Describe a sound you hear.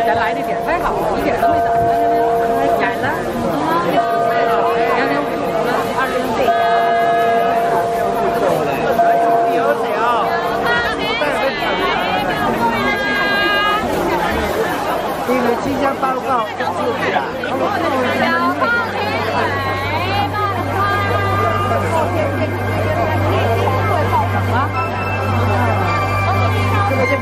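A large crowd of men and women chatters loudly all around outdoors.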